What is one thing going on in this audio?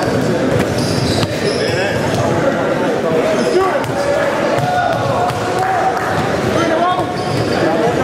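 A crowd chatters and murmurs in a large echoing gym.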